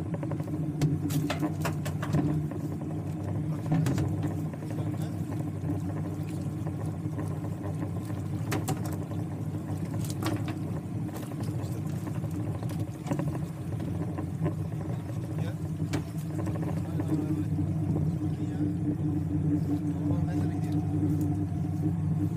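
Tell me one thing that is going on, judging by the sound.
Small waves lap against a small boat's hull.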